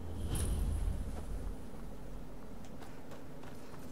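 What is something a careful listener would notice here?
Footsteps fall on stone paving.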